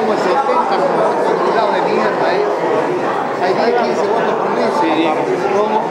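A middle-aged man speaks up close into a handheld phone microphone.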